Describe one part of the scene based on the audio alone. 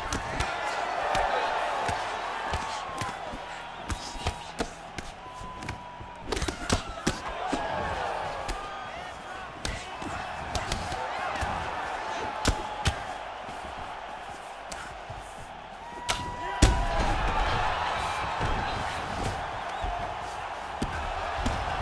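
Punches land with sharp, dull thuds.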